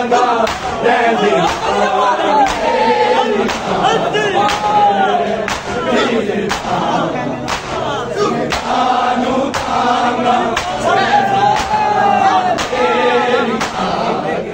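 Men beat their chests in a steady, slow rhythm.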